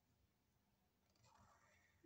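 A marker squeaks faintly on paper.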